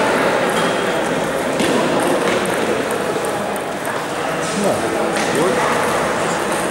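Ping-pong balls click on tables.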